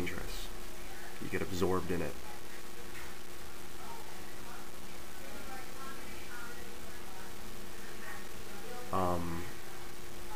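A young man speaks close to a microphone, in short bursts with pauses.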